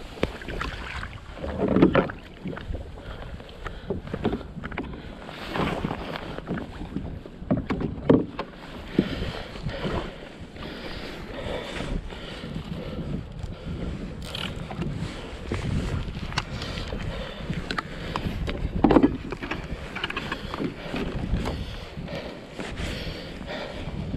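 Small waves slap against the hull of a kayak.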